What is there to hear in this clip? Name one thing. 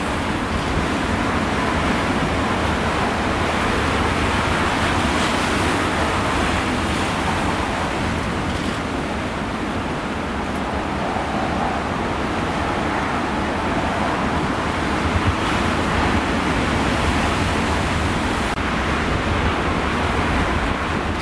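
Rough sea waves crash and roar against rocks.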